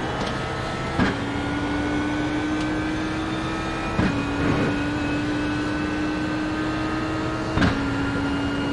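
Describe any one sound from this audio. Gear shifts snap sharply a few times.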